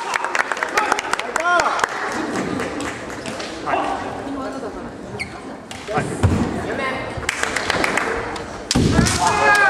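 Bamboo swords clack sharply against each other in a large echoing hall.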